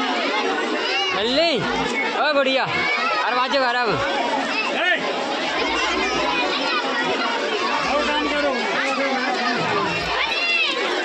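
Children squeal and shriek in high voices.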